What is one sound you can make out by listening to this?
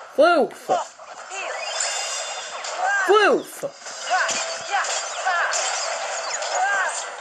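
Upbeat game music plays from a small speaker.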